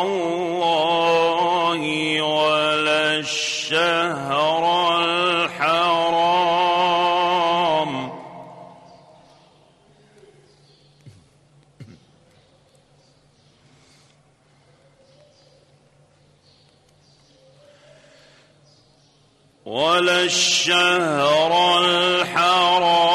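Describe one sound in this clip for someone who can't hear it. An elderly man chants in a long, melodic voice, heard through a microphone.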